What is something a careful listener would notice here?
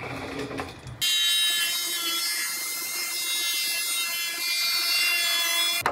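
A high-pitched cutting grinder whines steadily against metal.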